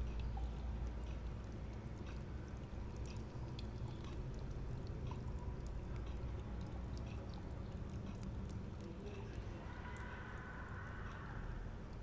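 A fire crackles and pops steadily.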